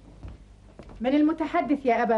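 A woman speaks up nearby.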